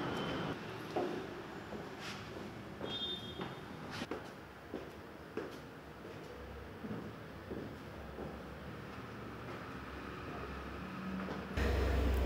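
Footsteps climb wooden stairs indoors.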